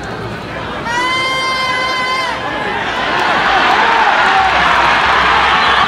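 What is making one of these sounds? A large crowd cheers and roars, growing louder.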